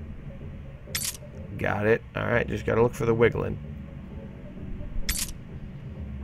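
A metal lock pick clicks sharply inside a lock.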